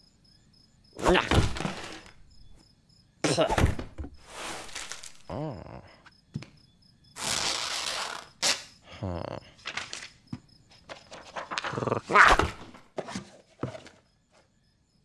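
Book pages rustle and flap as books are tossed aside.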